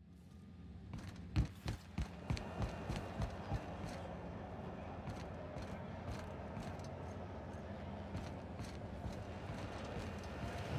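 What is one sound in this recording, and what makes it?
Footsteps tap on a hard metal floor.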